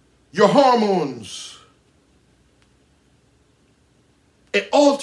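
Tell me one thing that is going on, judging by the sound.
A man speaks loudly and with strong emotion into a nearby microphone.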